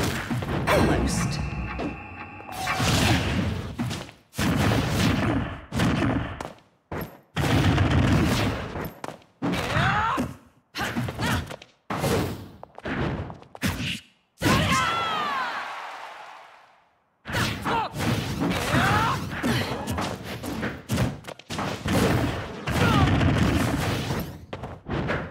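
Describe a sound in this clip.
Blades slash and blows land with sharp, heavy hits in quick bursts.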